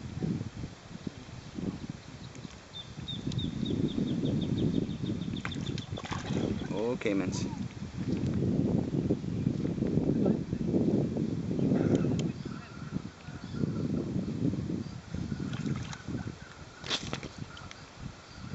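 Water splashes and churns as alligators thrash at the surface close by.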